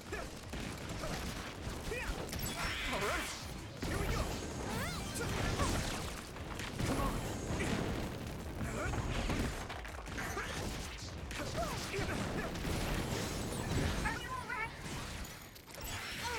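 Explosions burst with loud crackling bangs.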